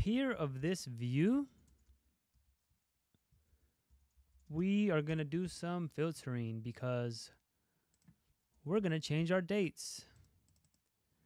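A young man talks calmly and closely into a microphone, in short bursts with pauses.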